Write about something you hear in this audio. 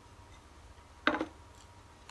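A ceramic plate knocks down onto a wooden table.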